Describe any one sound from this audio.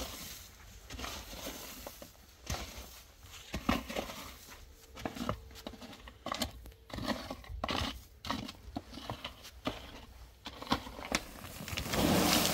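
A rake scrapes and scratches across dry dirt.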